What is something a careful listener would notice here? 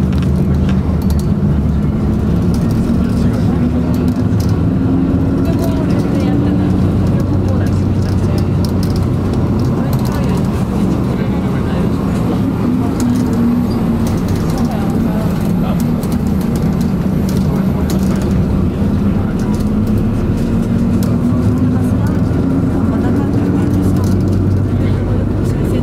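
Jet engines hum and whine steadily, heard from inside an aircraft cabin as it taxis.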